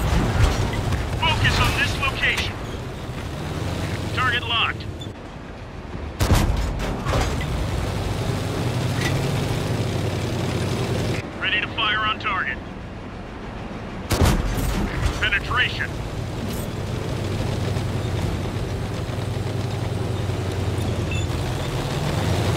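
Tank tracks clank and squeal over the ground.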